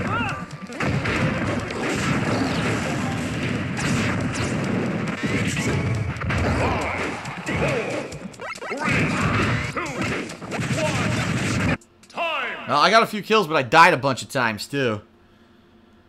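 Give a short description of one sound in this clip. Fighting game sound effects clash and burst rapidly.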